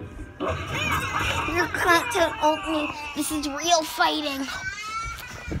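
A young boy talks loudly and playfully close to a phone microphone.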